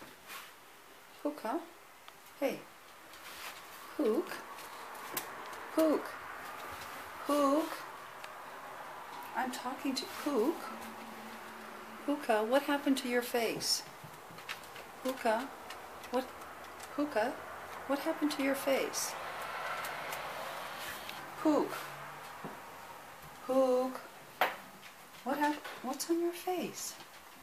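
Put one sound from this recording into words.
A dog's claws click and patter on a wooden floor.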